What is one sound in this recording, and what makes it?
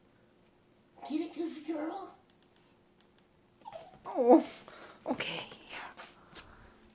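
A small dog whines and yelps close by.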